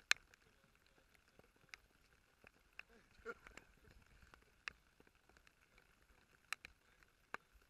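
Raindrops patter on a plastic tarp.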